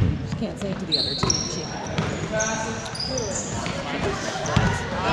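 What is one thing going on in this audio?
Sneakers squeak sharply on the floor.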